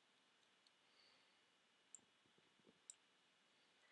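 A wooden block is chopped with dull knocks and breaks apart.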